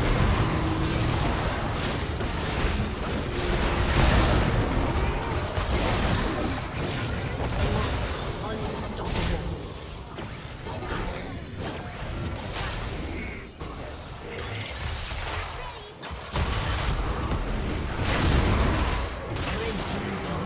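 Game spell effects whoosh, crackle and clash during a fast battle.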